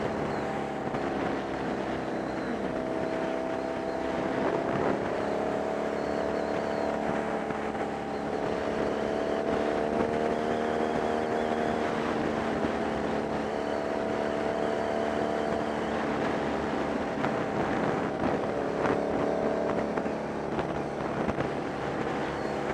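A motorcycle engine hums steadily, rising and falling in pitch as it rides.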